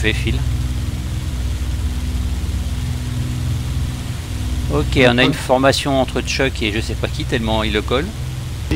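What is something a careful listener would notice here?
A propeller plane's engine drones steadily from inside the cockpit.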